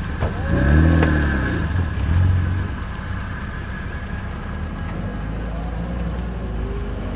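A car engine revs loudly as the car pulls away.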